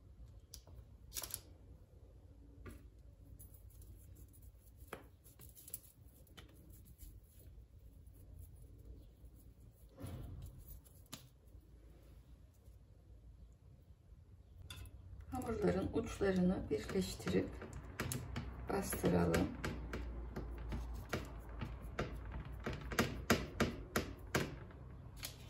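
Fingers pat and press soft dough.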